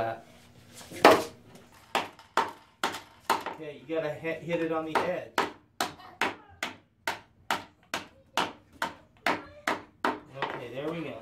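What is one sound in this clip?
A hammer taps rapidly on metal over wood.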